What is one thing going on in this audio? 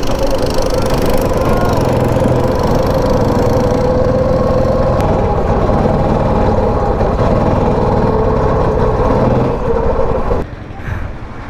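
A go-kart engine buzzes loudly and steadily close by.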